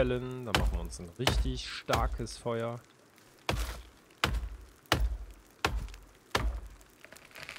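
An axe chops into a tree trunk with repeated heavy thuds.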